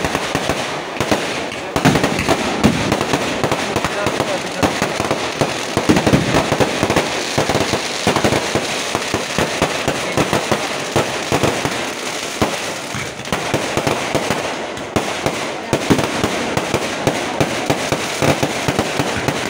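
Fireworks bang loudly as shells burst overhead.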